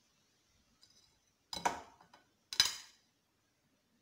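Metal tongs clink against a ceramic plate.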